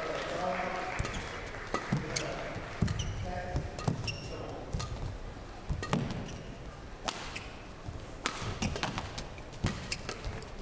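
Badminton rackets strike a shuttlecock back and forth.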